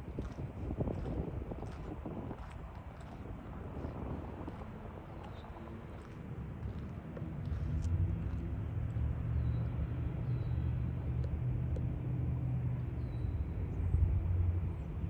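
Wind blows outdoors, gusting and rumbling low.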